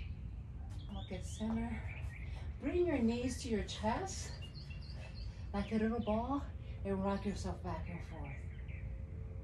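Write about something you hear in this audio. A woman speaks calmly, giving instructions nearby.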